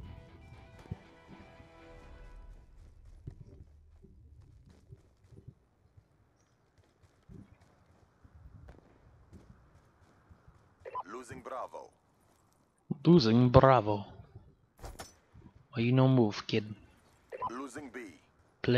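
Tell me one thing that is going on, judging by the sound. Footsteps crunch quickly over sand and gravel.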